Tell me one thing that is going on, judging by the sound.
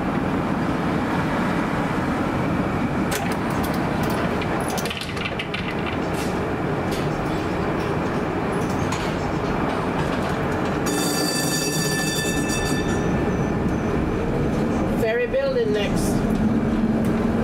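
Traffic rumbles steadily along a busy city street outdoors.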